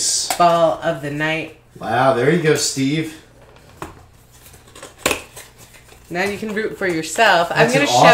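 A small cardboard box clicks and scrapes as fingers pry it open.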